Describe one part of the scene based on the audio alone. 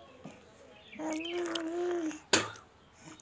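A baby coos softly close by.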